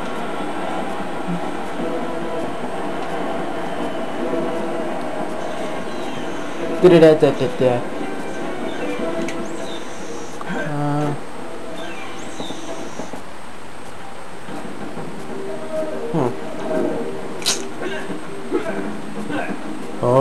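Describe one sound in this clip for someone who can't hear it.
Upbeat game music plays from a television loudspeaker.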